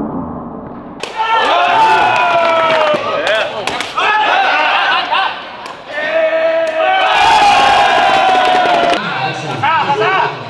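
Young men shout and call out loudly in an echoing hall.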